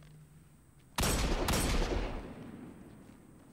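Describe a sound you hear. A handgun fires two loud shots that echo briefly.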